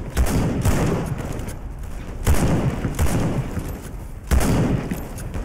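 Rifle shots crack loudly and echo.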